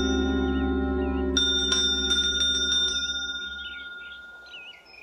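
A bell rings with a loud chime.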